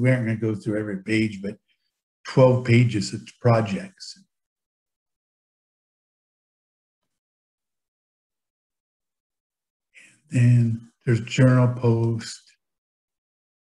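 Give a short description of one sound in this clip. A man talks calmly into a close microphone, heard as if over an online call.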